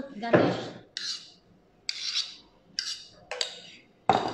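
A spoon scrapes the inside of a metal bowl.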